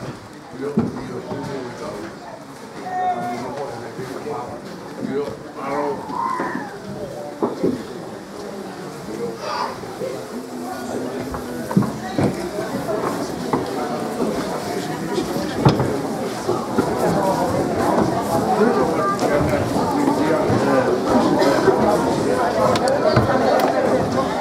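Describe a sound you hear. A crowd of men and women chatters all around in a large room, growing louder.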